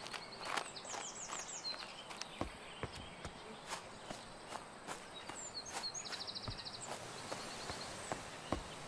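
Footsteps tap on a stone path.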